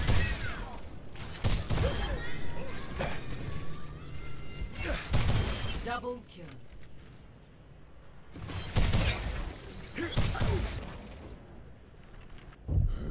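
Energy orbs burst with deep booming blasts in a video game.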